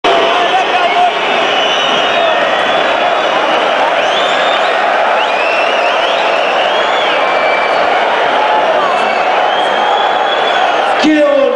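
A large stadium crowd chants and sings loudly and steadily.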